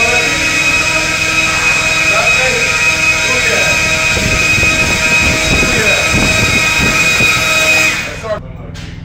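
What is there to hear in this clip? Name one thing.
A leaf blower roars steadily with a high whine.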